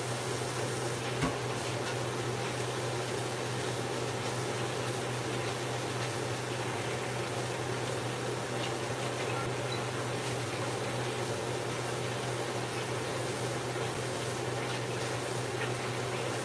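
Water runs steadily from a tap into a sink.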